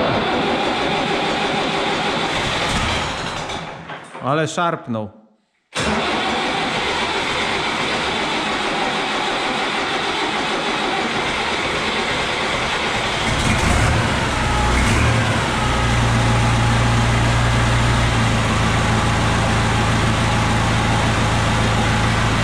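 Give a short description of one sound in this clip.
A diesel tractor engine runs loudly and roughly, echoing in a large room.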